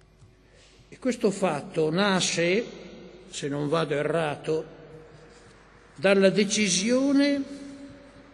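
An elderly man speaks slowly and deliberately into a microphone, heard through loudspeakers in a large hall.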